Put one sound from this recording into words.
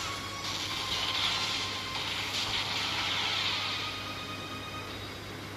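A magical blast whooshes and roars.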